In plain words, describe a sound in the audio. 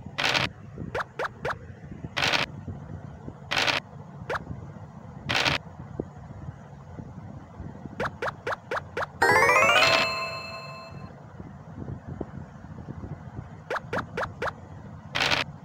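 Game pieces tick as they hop from square to square.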